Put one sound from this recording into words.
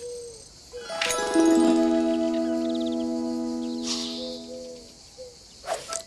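A bright electronic chime rings out and slowly fades.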